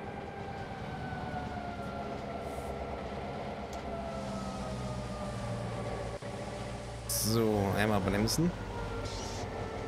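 A diesel locomotive engine rumbles steadily as the train rolls along the rails.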